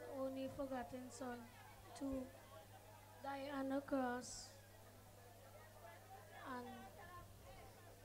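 A young boy speaks softly into a microphone, heard through a loudspeaker.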